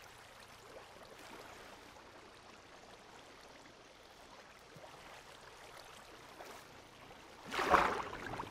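Water bubbles and swishes softly.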